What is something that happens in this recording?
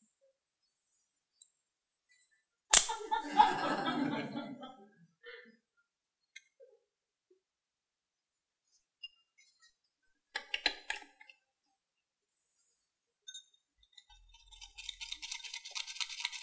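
Small utensils clink and tap against wood and ceramic.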